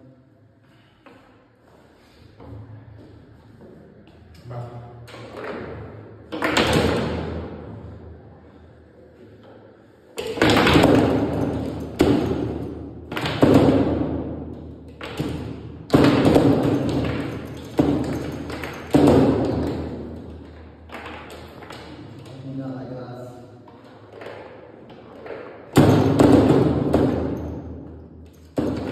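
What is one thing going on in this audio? A foosball ball cracks against rods and walls with sharp knocks.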